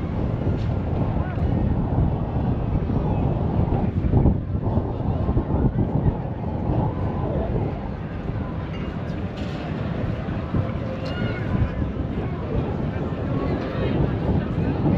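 Many people chatter in a busy crowd outdoors.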